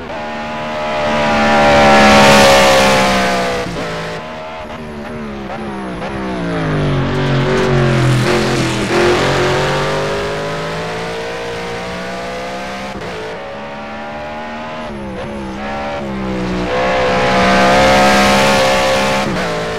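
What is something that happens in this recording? A race car engine roars loudly, rising and falling in pitch as it speeds past and shifts gears.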